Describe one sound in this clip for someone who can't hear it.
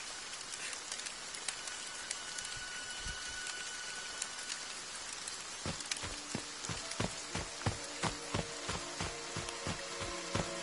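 Rain patters steadily all around.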